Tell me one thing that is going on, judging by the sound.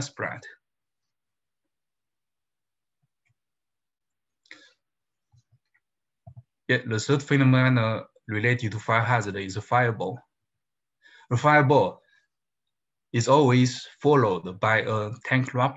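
A man speaks calmly through a microphone, as if on an online call, with pauses.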